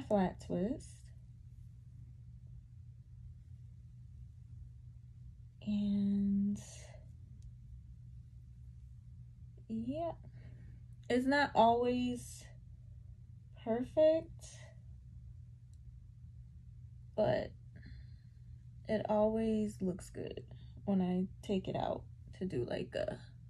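A young woman talks casually close by, in short bursts.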